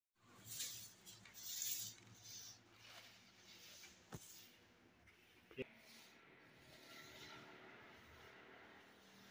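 Hands rub and scrub across a hard floor.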